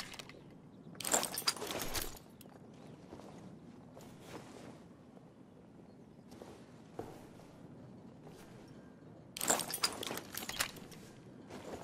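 Weapons clatter and clack as they are picked up and swapped.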